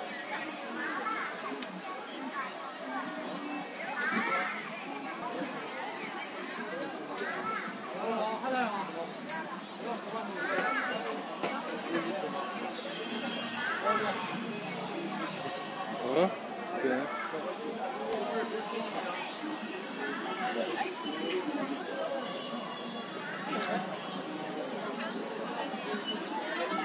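A crowd of men and women chatters all around outdoors on a busy street.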